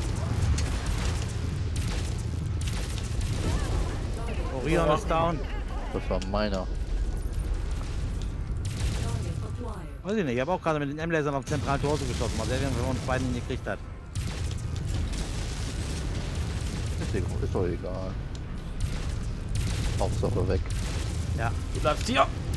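Heavy gunfire and explosions boom and rumble.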